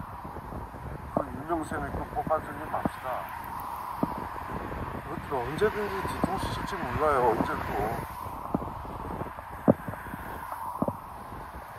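Cars drive past close by on a busy road, tyres humming on the asphalt.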